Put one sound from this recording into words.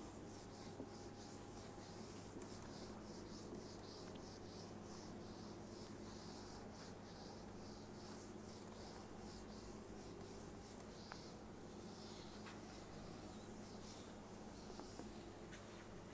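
A felt eraser rubs across a whiteboard in quick, repeated swishes.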